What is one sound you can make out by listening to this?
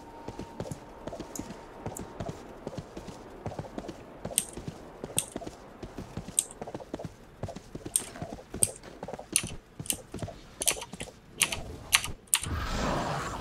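Hooves clop steadily as a mount trots along.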